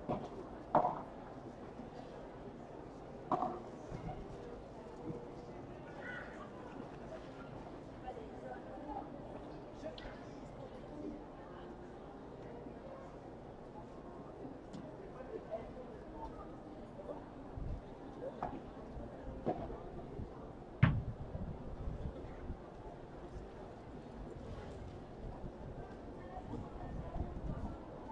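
A crowd murmurs outdoors in the open air.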